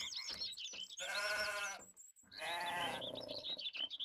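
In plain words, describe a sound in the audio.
Sheep bleat nearby.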